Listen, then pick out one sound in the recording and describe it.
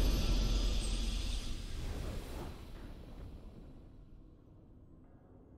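A deep, booming victory sound effect from a video game rings out and slowly fades away.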